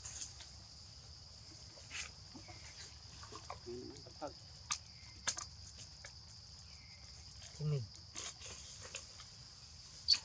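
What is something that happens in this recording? A monkey crinkles a plastic bottle in its hands.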